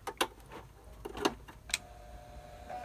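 A key clicks as it is pressed.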